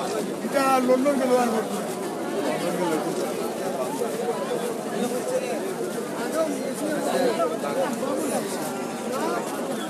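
A crowd of men talk all around in a busy, noisy market.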